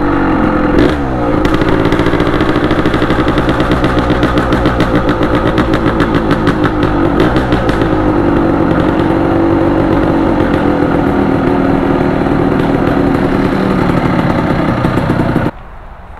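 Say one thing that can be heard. A motorcycle engine putters and revs at low speed.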